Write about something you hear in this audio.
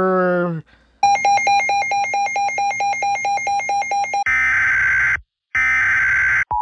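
A weather radio sounds a loud beeping, shrill alert tone.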